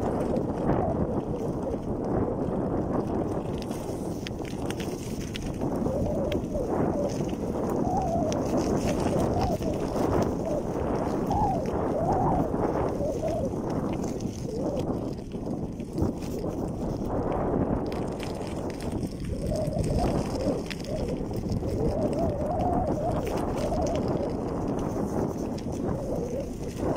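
Wind buffets loudly across the microphone outdoors.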